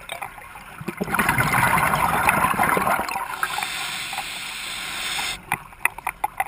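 Air bubbles from a diver's breathing gear rush and gurgle underwater.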